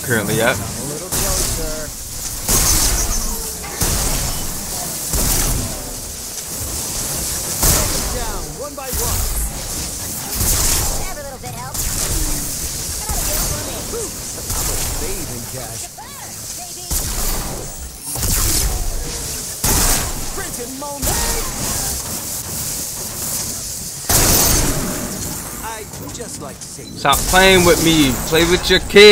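Laser beams and energy blasts fire and crackle in bursts.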